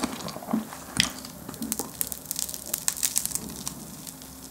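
A man crunches loudly on a crisp pastry close to a microphone.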